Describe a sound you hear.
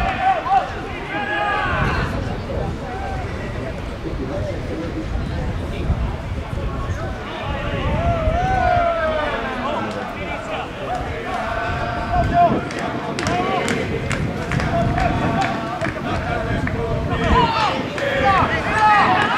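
A crowd of spectators murmurs and calls out in the distance.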